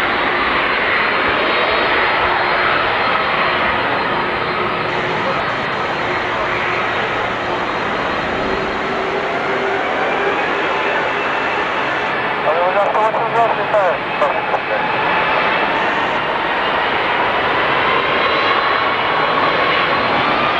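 A jet airliner's engines whine and roar steadily as it taxis close by.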